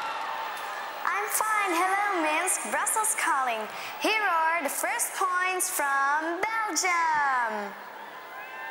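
A young girl speaks calmly into a microphone.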